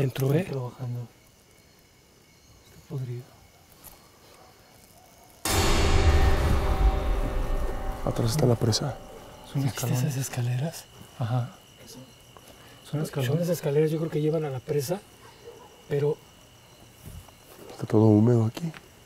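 Men talk quietly to one another.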